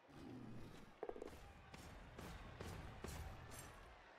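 Armoured players clash on a field with heavy thuds and clanks.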